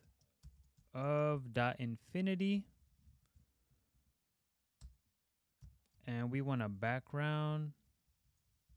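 A young man speaks calmly into a close microphone, in short phrases with pauses.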